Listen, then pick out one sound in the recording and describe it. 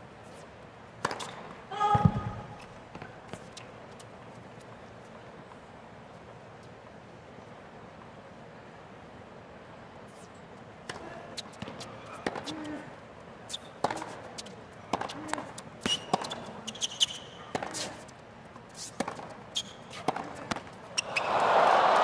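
A tennis ball is struck back and forth with rackets, with sharp pops.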